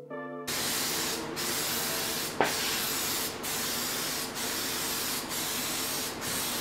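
A spray can hisses in long bursts with short pauses between them.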